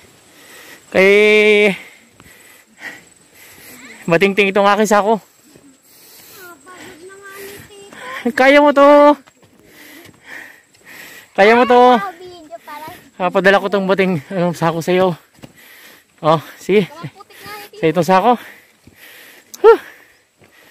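A young girl talks and calls out loudly close by, outdoors.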